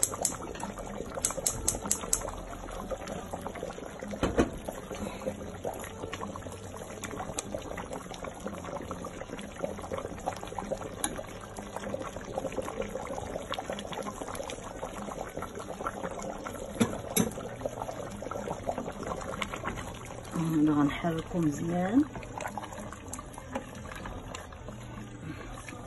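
A pot of liquid bubbles and simmers steadily.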